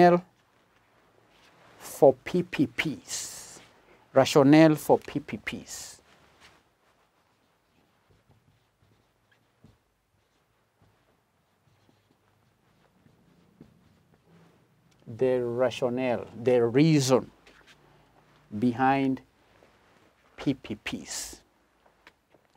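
A middle-aged man lectures calmly into a microphone, in pauses.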